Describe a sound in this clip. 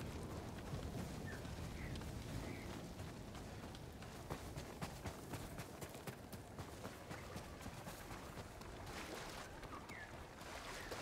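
Footsteps crunch through snow at a running pace.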